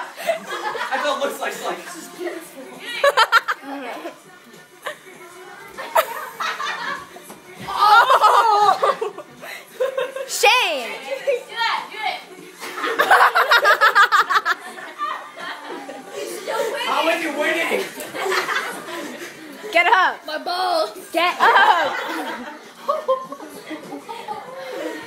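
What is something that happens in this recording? Teenage boys shout and laugh excitedly nearby.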